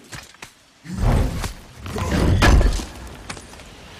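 A heavy chest lid creaks and thuds open.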